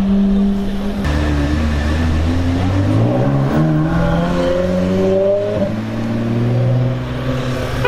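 A sports car engine revs up, rising and falling in pitch.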